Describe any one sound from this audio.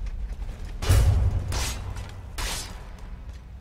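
A sword strikes with sharp, heavy blows.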